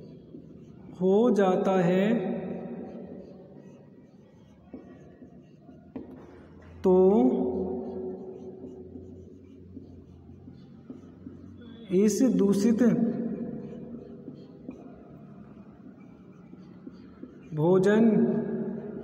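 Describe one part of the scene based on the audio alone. A young man speaks in short bursts in an echoing room.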